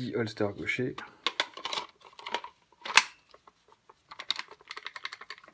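A pistol snaps and clicks into a plastic holster.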